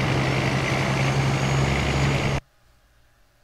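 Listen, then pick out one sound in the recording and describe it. A truck engine rumbles steadily, then cuts off abruptly.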